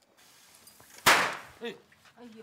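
A firecracker bangs sharply.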